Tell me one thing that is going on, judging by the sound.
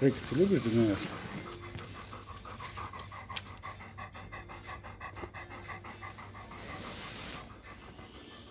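A dog pants quickly nearby.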